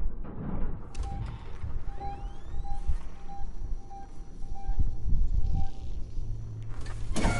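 A handheld motion tracker beeps in a steady pulse.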